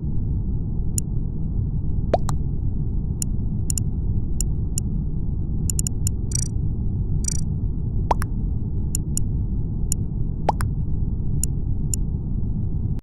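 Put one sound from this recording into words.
Short menu clicks and blips sound now and then.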